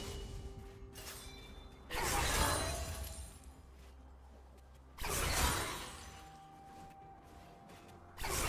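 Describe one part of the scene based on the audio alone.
Game spells whoosh and crackle in a fight.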